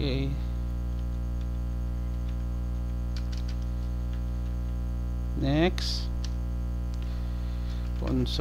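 A man speaks briefly and calmly into a close headset microphone.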